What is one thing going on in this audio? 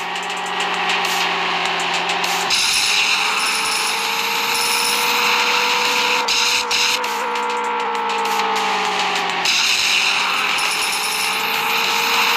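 A car engine drones steadily, its pitch slowly rising and falling.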